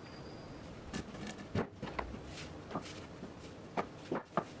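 A wooden panel knocks as it is set down into a wooden frame.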